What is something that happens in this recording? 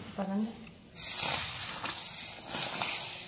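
Hot spiced oil hisses loudly as it is poured into a pot of lentils.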